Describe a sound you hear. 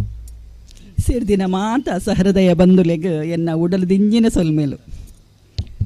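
A woman speaks with animation through a microphone and loudspeakers in an echoing hall.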